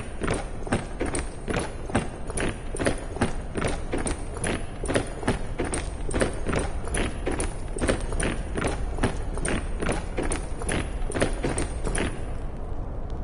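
Footsteps march across stone in a quick, steady rhythm.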